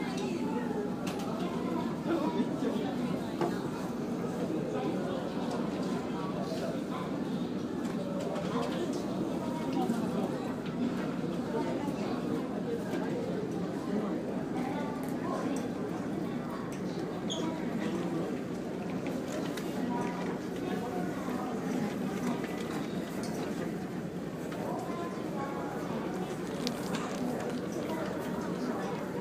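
A boat's engine drones steadily.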